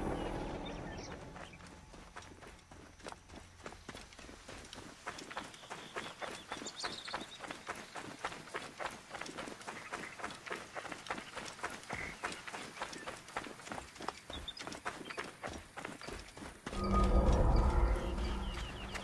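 Footsteps run quickly over dry ground and stones.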